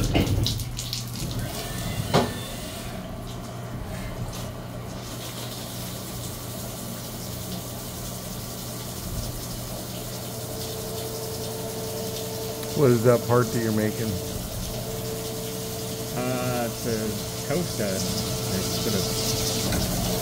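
A milling machine hums steadily.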